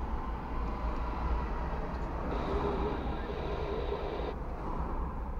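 A car engine idles with a low, steady rumble from inside the car.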